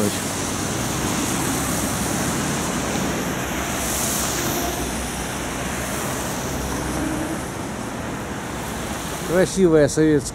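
Traffic rumbles steadily on a wet street outdoors.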